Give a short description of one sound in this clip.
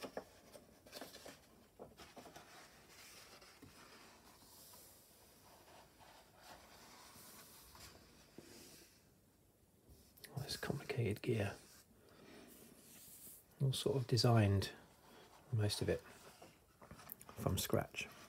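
A page of a book is turned with a soft paper rustle.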